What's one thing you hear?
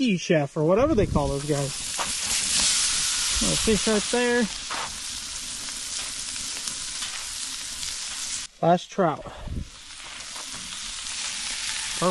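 A wood fire crackles and roars.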